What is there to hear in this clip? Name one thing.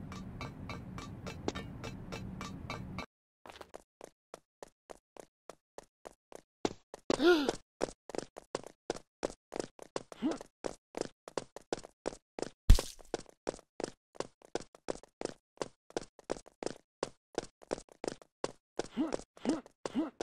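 Quick game footsteps patter steadily across a hard floor.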